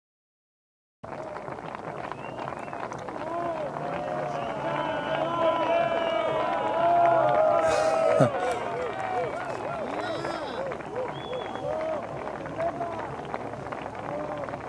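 A large crowd of men and women chatters and cheers outdoors.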